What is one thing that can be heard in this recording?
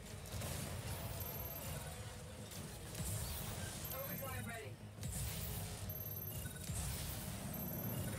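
Rapid gunfire and energy blasts rattle loudly.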